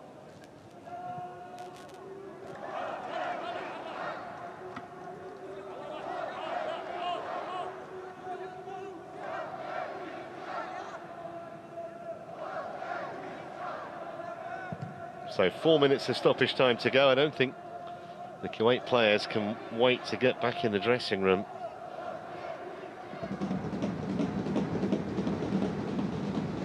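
A crowd murmurs and calls out across a large open stadium.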